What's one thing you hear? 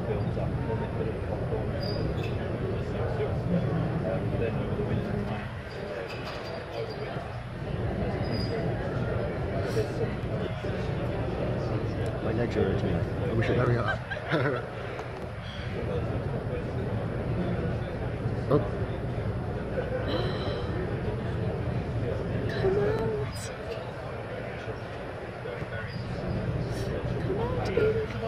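Bumblebees buzz and hum close by.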